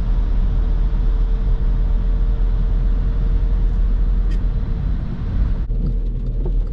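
Tyres roar on the road, echoing inside a tunnel.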